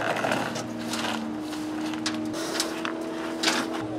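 A brush scrapes dirt across a metal sheet.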